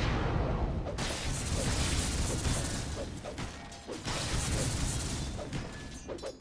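Spell effects whoosh and crash loudly.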